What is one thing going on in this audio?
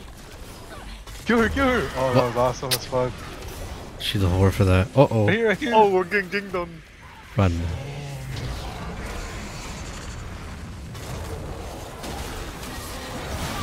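Game figures clash in a fight with sharp impact sounds.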